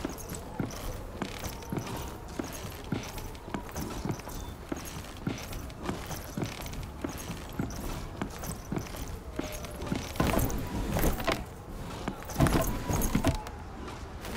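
Footsteps knock on wooden ladder rungs in a steady climbing rhythm.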